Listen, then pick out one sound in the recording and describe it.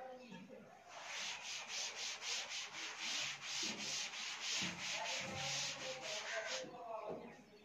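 Chalk taps and scrapes rapidly on a board.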